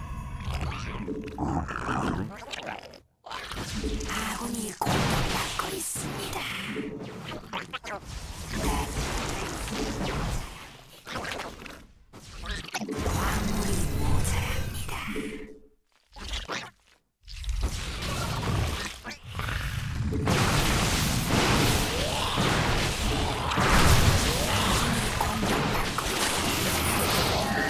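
Game battle effects clash and burst in quick bursts.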